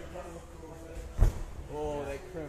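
A climber drops onto a padded floor with a heavy thud.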